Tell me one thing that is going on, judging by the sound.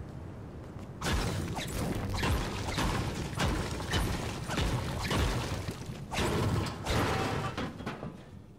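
A pickaxe strikes a stone wall again and again.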